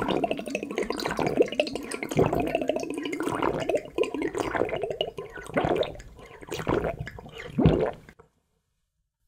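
A man slurps liquid noisily, close up.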